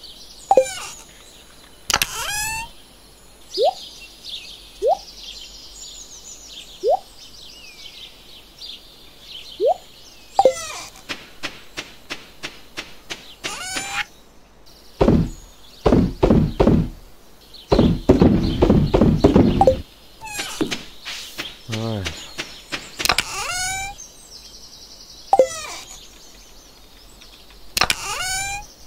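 A video game's short chimes and soft clicks sound again and again.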